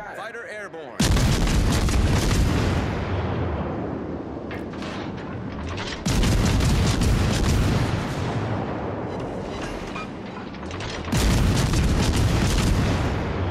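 Heavy naval guns fire in loud booming salvos.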